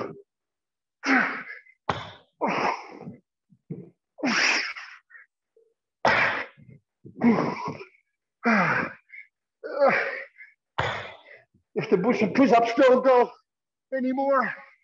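A man talks steadily through a microphone in an echoing room.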